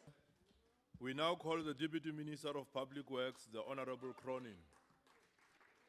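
A man speaks firmly through a microphone in a large echoing hall.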